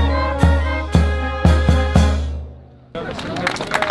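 A brass band plays a march outdoors.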